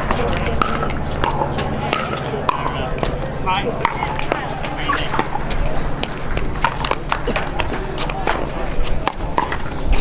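Paddles hit a plastic ball with sharp pops.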